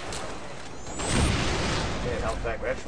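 Gunfire bursts loudly in a game.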